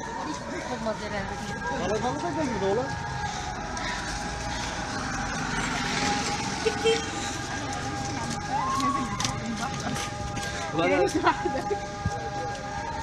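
Men and women talk and laugh close by.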